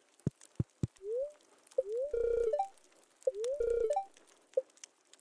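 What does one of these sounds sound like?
Short electronic blips and chimes sound.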